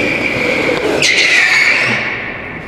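Go-kart tyres squeal on a smooth floor.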